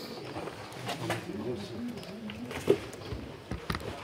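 Cardboard boxes thump as they are loaded.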